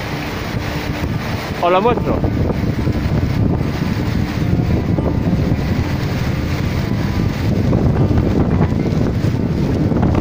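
A waterfall roars steadily in the distance.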